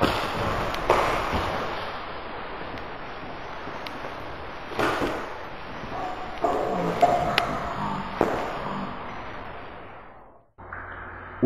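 Bare feet shuffle on a mat.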